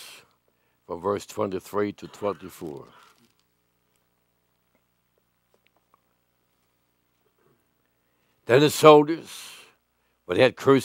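An elderly man speaks slowly and deliberately through a microphone, with long pauses.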